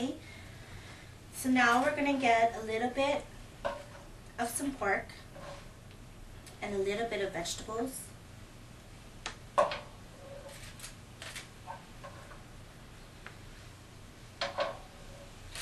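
A spatula scrapes and clinks against a metal pan.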